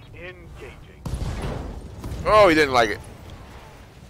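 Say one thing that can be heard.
Heavy weapons fire and an explosion booms.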